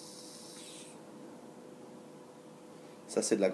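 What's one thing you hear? A man exhales a puff of vapour.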